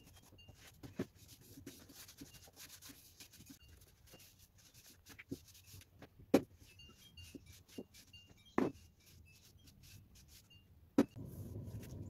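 A wooden frame knocks against a table top.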